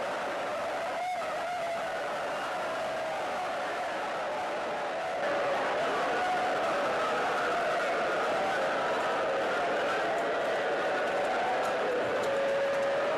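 A large crowd of men chants loudly together in a large echoing hall.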